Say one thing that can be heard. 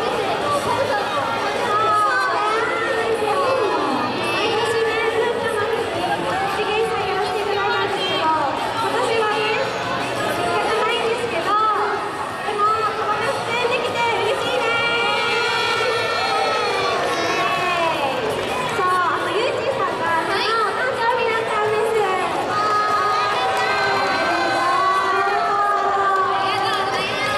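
Young women sing together through loudspeakers in a large echoing hall.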